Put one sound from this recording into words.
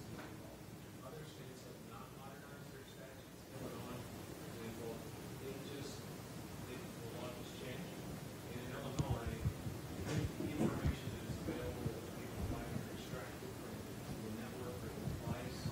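A man gives a talk through a microphone in a large echoing hall.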